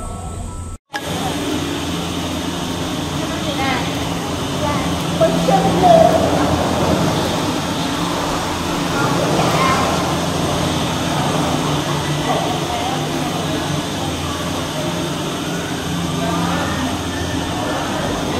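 Cable car machinery hums steadily.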